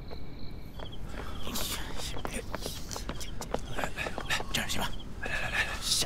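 Footsteps hurry across the ground.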